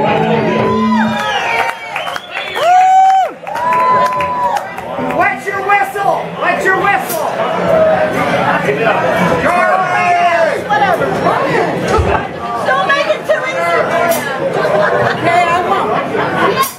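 Drums are played in a steady rock beat.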